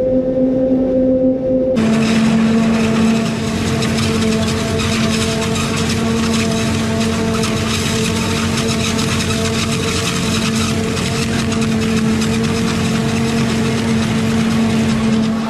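A harvester engine drones steadily and loudly.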